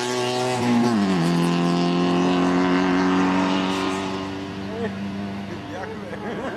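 A rally car engine roars loudly nearby, drops in pitch as it shifts gear, then fades into the distance.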